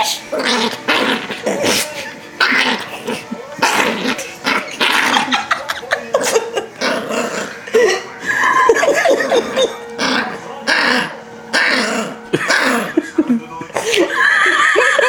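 A blanket rustles as a small dog wriggles on it.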